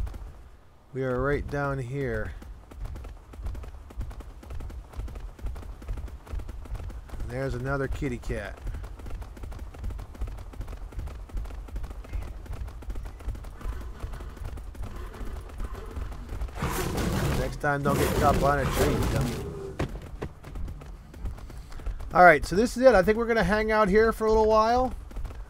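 A bear growls loudly.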